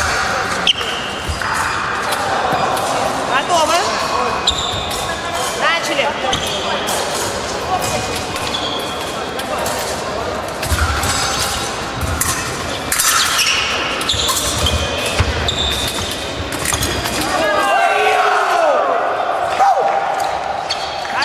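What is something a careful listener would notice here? Fencing blades clash and click in a large echoing hall.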